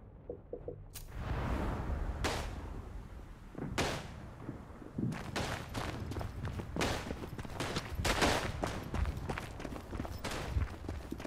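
Explosions boom and rumble in the distance.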